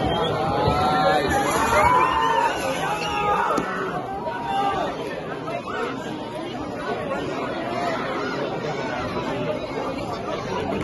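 A crowd of men and women shout and cry out excitedly outdoors.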